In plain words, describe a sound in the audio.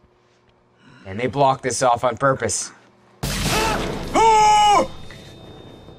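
A young man screams in fright into a headset microphone.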